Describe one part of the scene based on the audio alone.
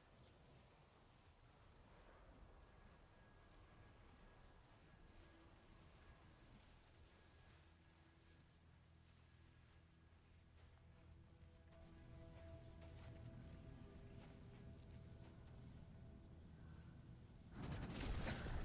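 Wind rumbles low and steady outdoors.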